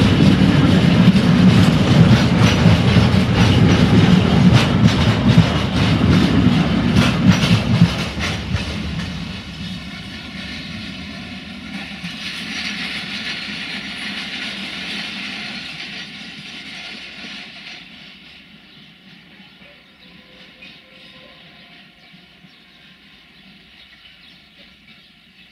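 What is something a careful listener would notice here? A freight train rumbles past close by, then fades into the distance.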